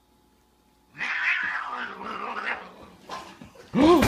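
Two cats hiss and yowl as they fight.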